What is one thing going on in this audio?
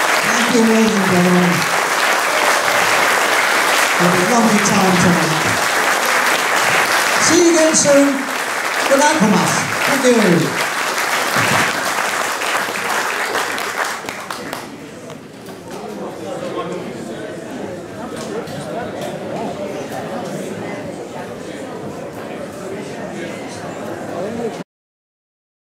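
A jazz band plays brass and reed instruments in a hall.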